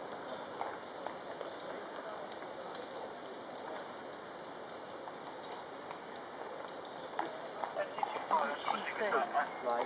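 Horses' hooves clop on a paved road.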